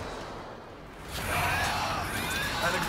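A fireball explodes with a loud roar.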